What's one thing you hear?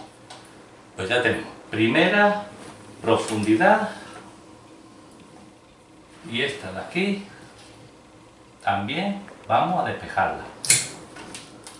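An older man speaks calmly and close by, in short phrases.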